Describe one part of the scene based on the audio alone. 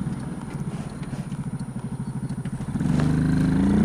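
A motorcycle engine throbs with a low, pulsing beat.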